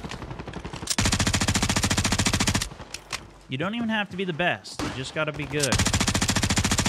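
A light machine gun fires in rapid bursts.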